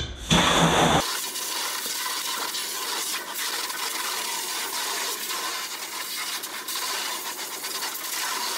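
Water sprays in a steady hissing stream from a hose nozzle.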